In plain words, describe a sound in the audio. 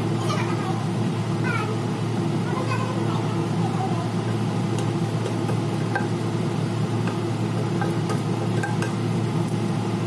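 A wooden spatula scrapes and taps against a pan.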